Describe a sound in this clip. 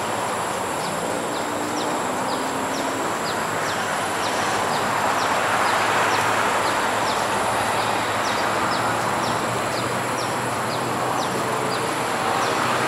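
A diesel locomotive rumbles steadily as it approaches slowly along the tracks.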